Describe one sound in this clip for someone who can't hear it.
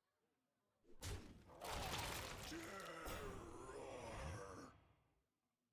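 Magical game sound effects whoosh and chime.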